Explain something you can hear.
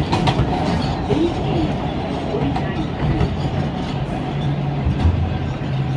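A train rumbles and clatters past close by.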